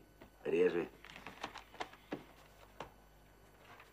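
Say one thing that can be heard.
Papers and a book rustle and knock on a desk.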